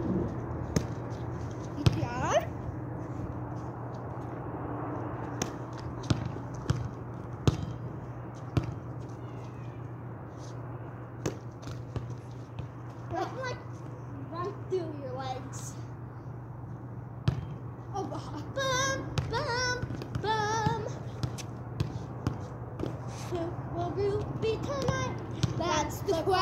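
A volleyball is bumped back and forth with sharp thuds.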